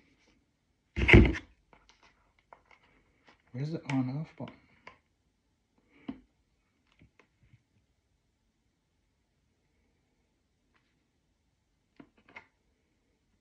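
A plastic bottle cap clicks and snaps.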